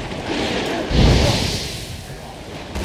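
A fiery explosion bursts with a deep boom.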